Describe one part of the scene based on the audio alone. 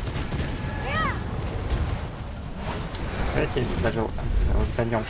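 Magic spells crackle and whoosh in combat.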